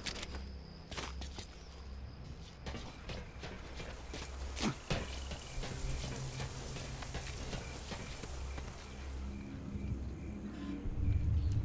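Boots shuffle and scrape on stone.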